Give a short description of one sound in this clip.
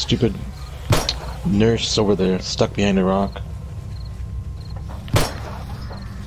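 A pistol fires sharp shots.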